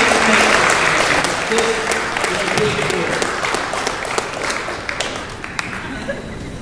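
People clap their hands in applause.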